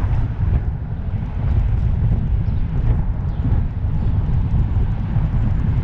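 A car engine hums as the car drives along a street.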